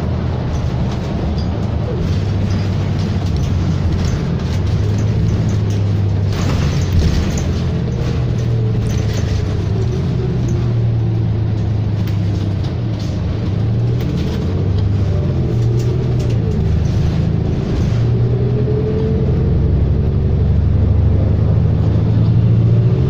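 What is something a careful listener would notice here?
The bus interior rattles and creaks as it drives.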